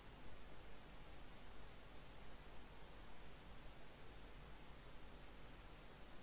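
Plastic sheeting crinkles and rustles under a hand.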